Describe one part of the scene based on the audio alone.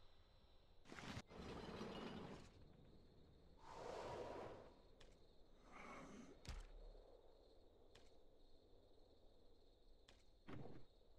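Game buttons click softly now and then.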